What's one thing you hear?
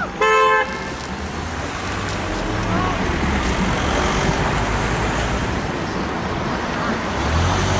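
Cars drive past close by on a street.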